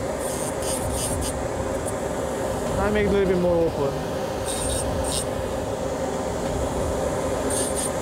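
A small rotary tool whirs as its cutting disc grinds.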